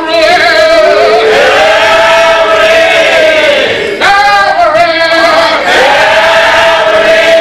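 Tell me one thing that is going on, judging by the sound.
A congregation sings together in an echoing hall.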